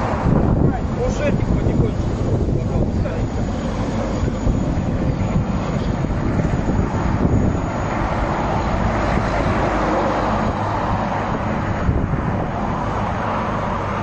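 An excavator engine rumbles nearby.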